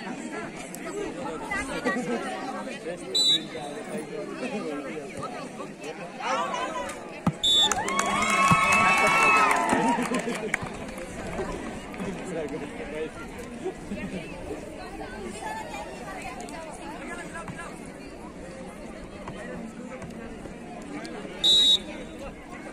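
A crowd of girls and young people chatters and shouts outdoors.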